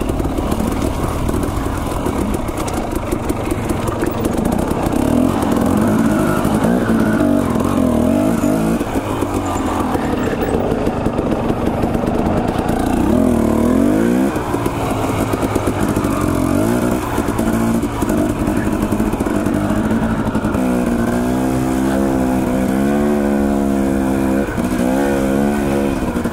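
A motorcycle engine hums and revs up and down as it rides.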